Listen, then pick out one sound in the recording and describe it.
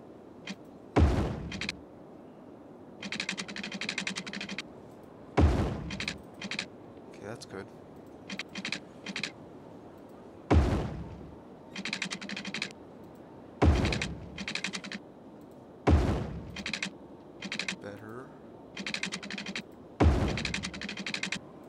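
Road pieces snap into place with a deep thud, again and again.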